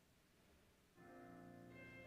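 A boys' choir begins to sing in a reverberant hall.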